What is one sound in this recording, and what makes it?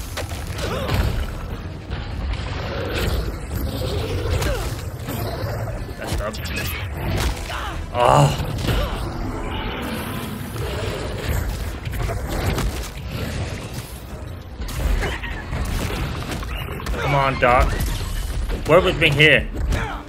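Heavy blows and thuds land in a fight.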